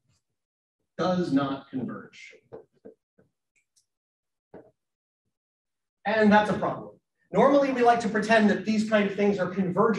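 A man lectures through a microphone in an online call, pausing between phrases.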